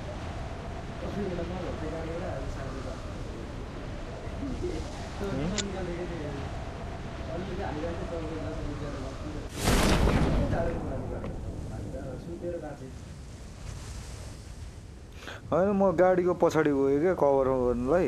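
Young men talk with animation close to a microphone.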